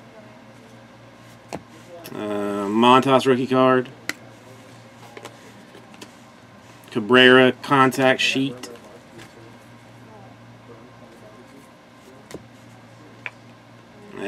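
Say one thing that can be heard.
Trading cards slide and flick against each other in hand.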